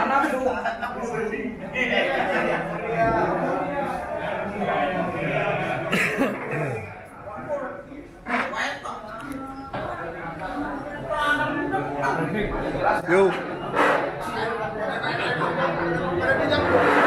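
Many people chatter at once in the background.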